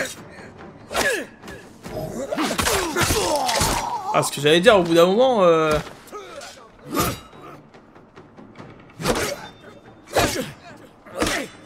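Swords clash and strike in sharp hits.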